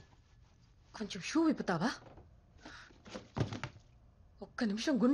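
A young woman speaks tensely and close by.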